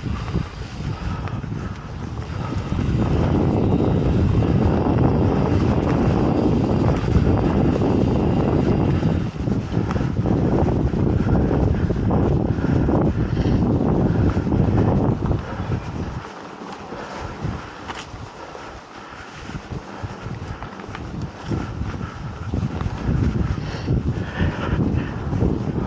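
Mountain bike tyres roll over a dirt trail.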